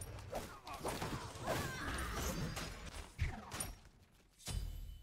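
Game combat effects clash and whoosh.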